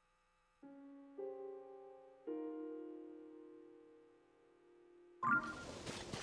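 Soft pitched menu chimes ring out and fade.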